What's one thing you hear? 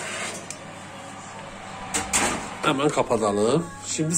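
An oven door swings shut with a thud.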